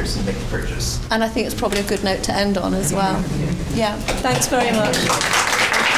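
A woman laughs into a microphone.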